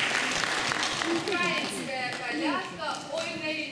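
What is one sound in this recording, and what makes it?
A mixed choir sings together in a large hall.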